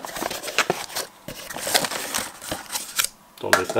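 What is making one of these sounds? Plastic wrapping crinkles inside a box.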